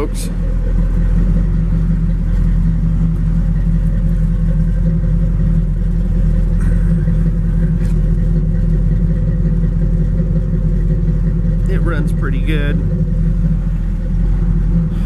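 A pickup truck's engine idles with a low exhaust rumble.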